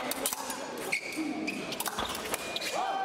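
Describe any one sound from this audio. Fencing blades clash and click sharply.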